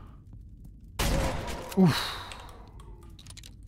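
A shotgun fires with a loud boom that echoes briefly.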